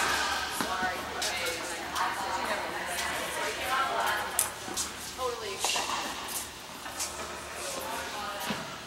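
Young women talk and call out across the courts at a distance.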